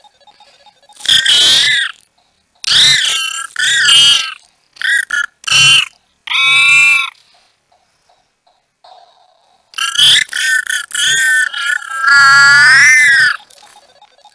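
A handheld electronic game plays loud, warbling electronic tones in short bursts.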